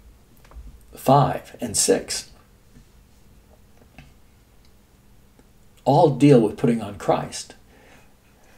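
An elderly man speaks calmly and close by in short bursts.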